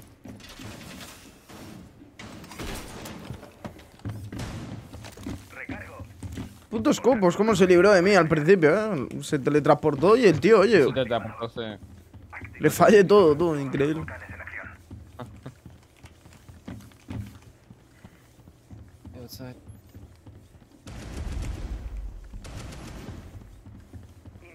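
Footsteps thud on hard floors and stairs in a game.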